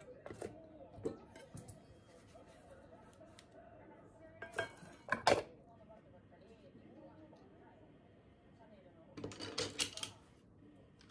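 Metal dishes clink and clatter.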